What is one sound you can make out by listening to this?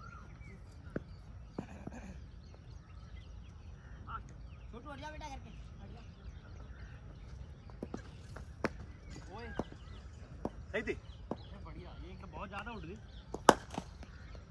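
A cricket bat sharply strikes a ball.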